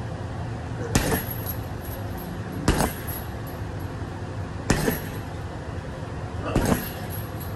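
A chain rattles as a punching bag swings.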